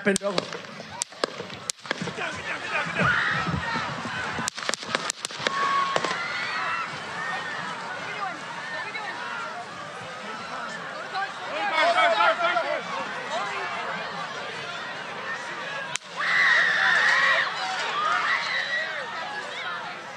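A crowd shouts and screams in alarm outdoors.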